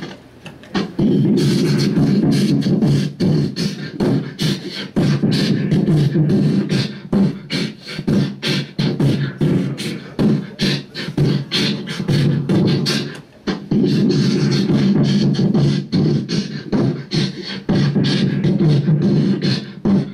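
Harsh electronic noise pulses and stutters from an effects box.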